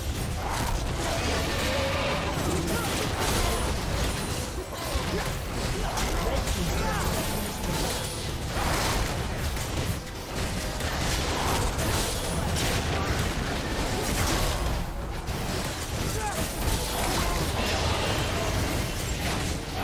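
Computer game battle effects clash and crackle.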